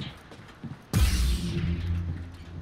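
A lightsaber ignites with a loud burst.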